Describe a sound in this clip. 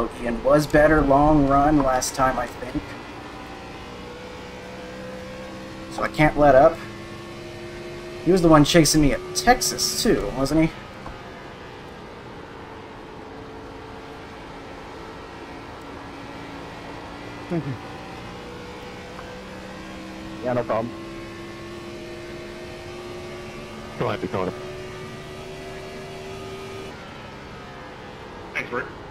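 A race car engine drones steadily, its pitch shifting slightly.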